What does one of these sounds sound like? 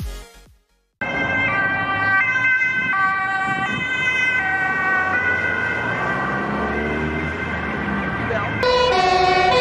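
An ambulance siren wails.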